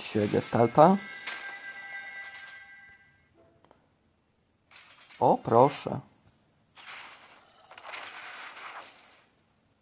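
Magical spell effects whoosh and chime.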